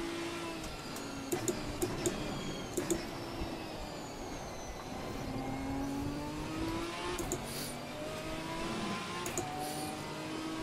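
Rain patters steadily on a car windscreen.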